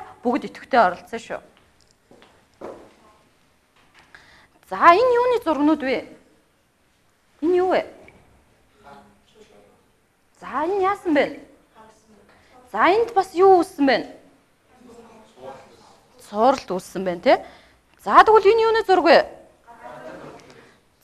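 A young woman speaks clearly through a microphone, explaining in bursts with pauses.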